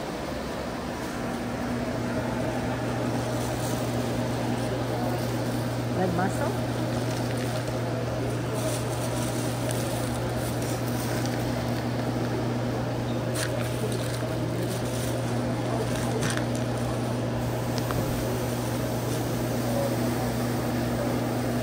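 A refrigeration unit hums steadily nearby.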